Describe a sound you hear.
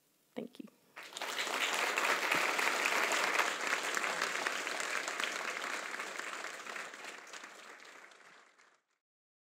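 An audience applauds loudly, then the applause fades.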